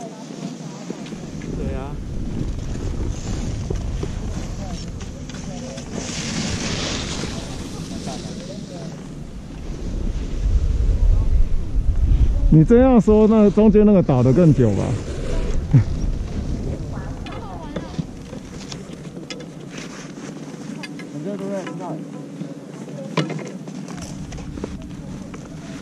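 Skis scrape and crunch over snow close by.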